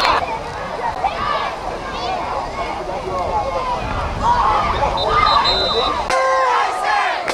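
A crowd of spectators cheers and shouts outdoors.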